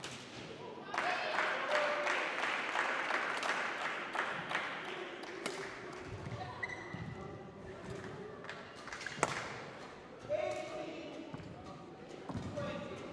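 Sports shoes squeak sharply on a hard court floor.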